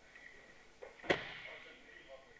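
A body slams down onto a mat with a heavy thud in an echoing hall.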